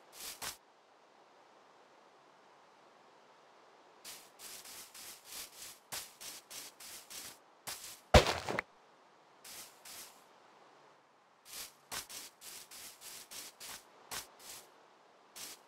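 Footsteps thud softly on grass in quick succession.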